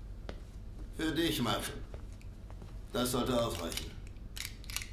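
An older man speaks firmly.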